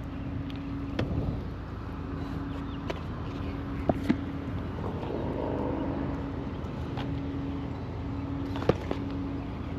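Plastic cases clack together as they are handled.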